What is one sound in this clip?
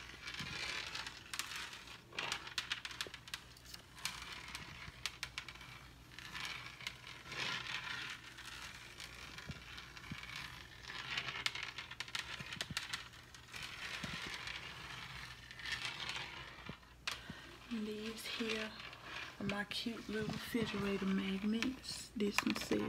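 Fingernails scratch and rub across a smooth hard surface close by.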